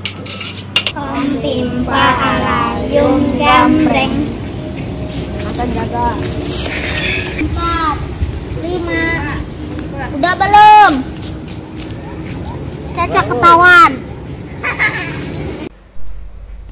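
Children shout and call out outdoors.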